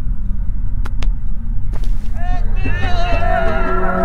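A person lands heavily on a stone floor.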